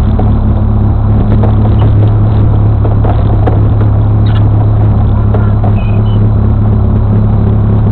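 An off-road buggy engine revs as it climbs over rough rocky ground.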